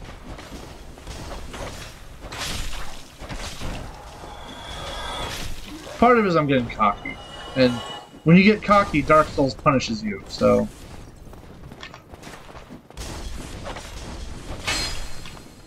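A sword slashes and strikes enemies with sharp metallic hits.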